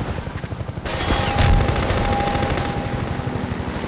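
Machine gun rounds splash into the water nearby.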